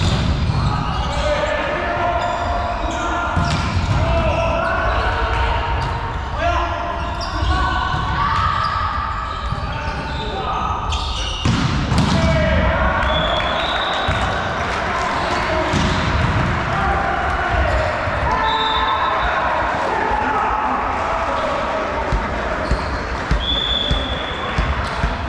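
Young players shout and call out to each other in a large echoing hall.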